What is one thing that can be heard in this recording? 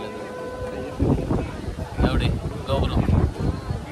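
A young man speaks up close to the microphone.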